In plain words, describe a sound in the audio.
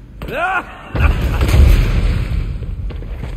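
An explosion booms with crumbling debris.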